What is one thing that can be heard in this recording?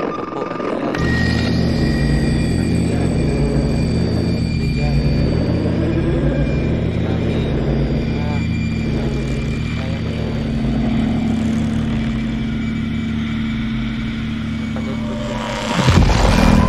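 A television hums and buzzes with static.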